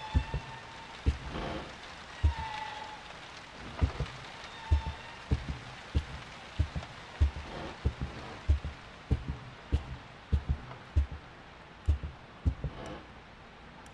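Heavy footsteps thud slowly on a wooden floor.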